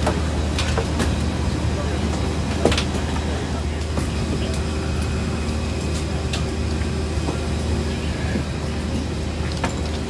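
Passengers murmur and chat quietly nearby.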